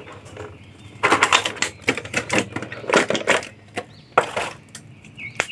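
A plastic bag crinkles and rustles as it is opened.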